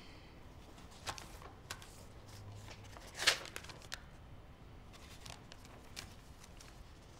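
Paper rustles as a sheet is handled.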